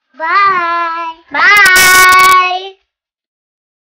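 Two young girls call out cheerfully and excitedly, close by.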